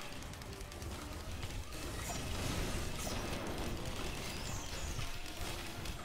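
Game gunfire and sci-fi effects crackle and zap.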